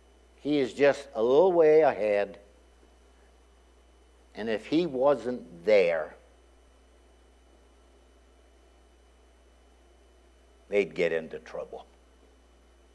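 An older man preaches with emphasis through a microphone, pausing between phrases.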